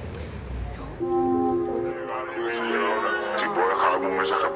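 Electronic music plays through loudspeakers.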